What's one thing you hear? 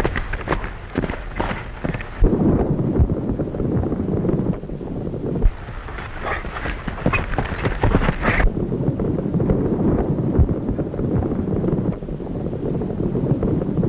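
A horse gallops on hard ground.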